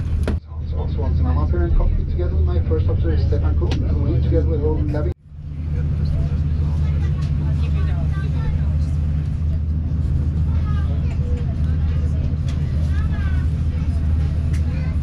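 The cabin of a jet airliner roars steadily in flight.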